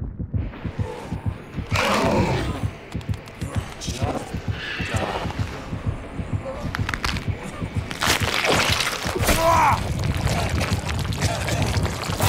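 A heart pounds loudly and fast.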